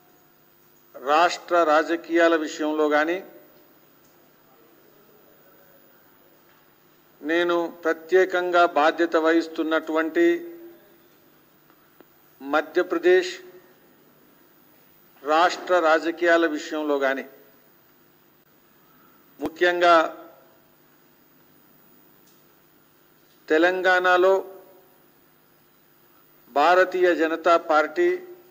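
A middle-aged man speaks firmly into a microphone in bursts, pausing between phrases.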